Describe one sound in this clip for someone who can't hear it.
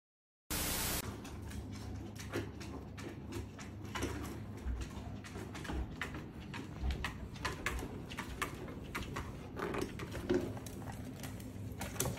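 Small dogs scuffle and growl while playing tug.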